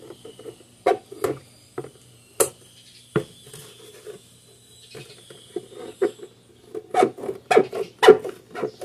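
Scissors snip through stiff plastic.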